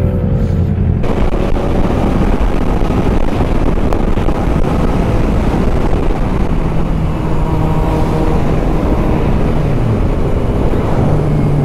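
Wind rushes past loudly at speed.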